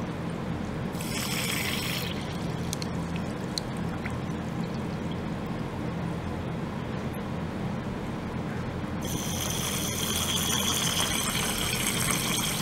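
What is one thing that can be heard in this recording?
A high hiss of cavitation rises in the water.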